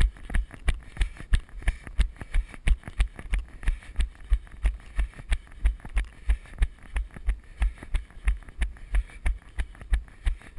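Tyres roll and bump steadily over a rough dirt trail.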